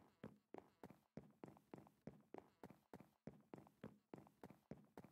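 Quick footsteps tap steadily on a hard surface.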